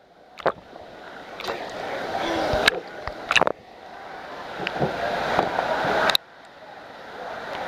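Water splashes and churns as a small child wades through a pool.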